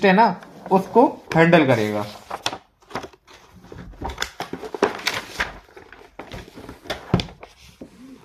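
Paper pages rustle as a notebook is flipped and moved.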